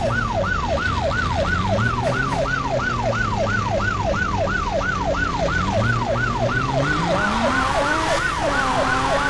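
A car engine hums and changes pitch as the car speeds up and slows down.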